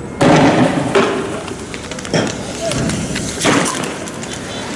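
Loud bangs go off close by, echoing.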